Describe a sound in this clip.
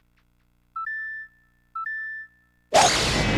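Electronic beeps sound twice in quick succession.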